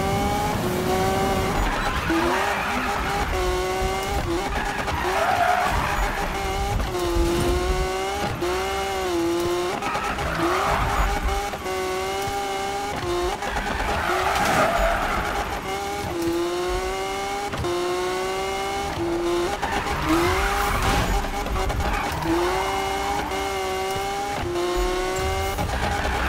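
A sports car engine roars at high speed.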